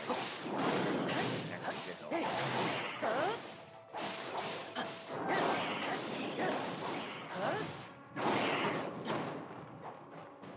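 Electric energy crackles and buzzes around a giant.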